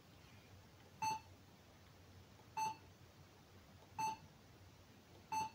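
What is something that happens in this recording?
A short electronic menu beep sounds several times at even intervals.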